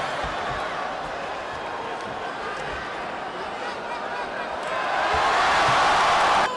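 A large crowd cheers and shouts in a big echoing arena, growing louder toward the end.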